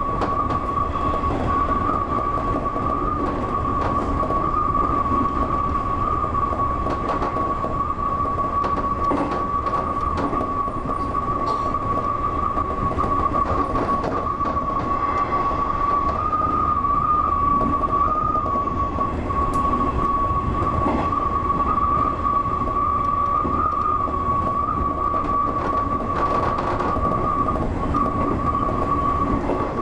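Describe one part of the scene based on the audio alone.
Wheels clack over rail joints.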